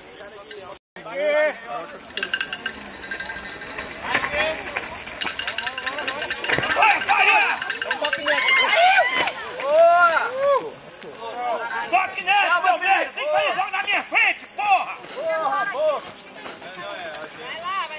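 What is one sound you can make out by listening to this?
Men nearby shout and cheer with excitement.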